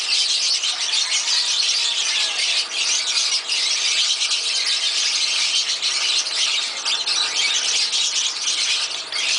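Small birds chirp and chatter constantly nearby.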